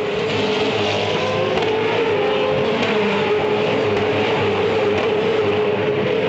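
Racing car engines roar loudly at high revs close by.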